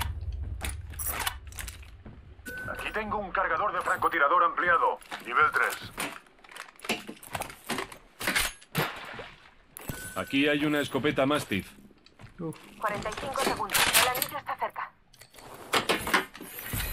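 Short clicks and clanks of items being picked up sound from a game.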